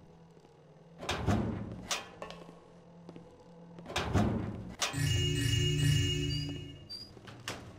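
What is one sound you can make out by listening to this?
A heavy door creaks open in an echoing space.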